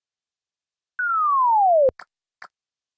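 A falling whistle-like tone sweeps downward.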